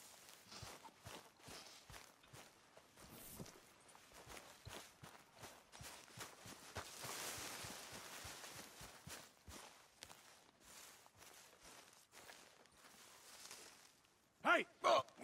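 Footsteps crunch through grass at a steady walking pace.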